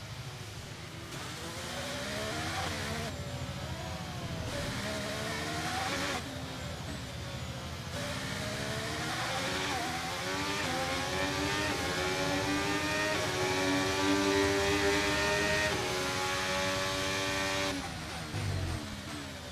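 A racing car engine whines loudly, its pitch rising and falling as the car shifts gears.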